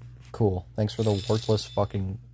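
A game plays a bright jingle as a reward is awarded.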